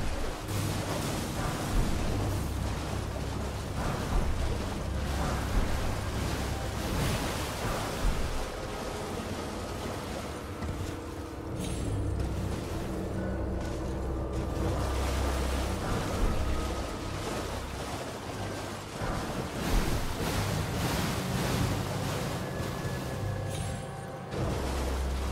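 A horse gallops with heavy hoofbeats.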